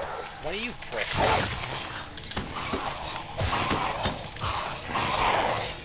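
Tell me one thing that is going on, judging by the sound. Someone crawls and scrapes across rough, gritty ground.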